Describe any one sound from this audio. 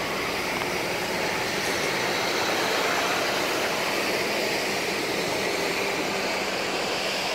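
Wind rustles steadily through trees outdoors.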